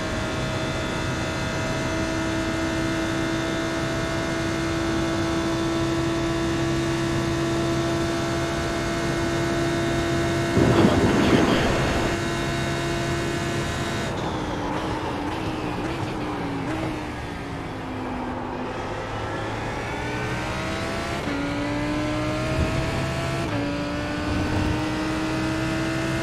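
A race car engine roars steadily at high speed, then drops in pitch while braking and climbs again through the gears.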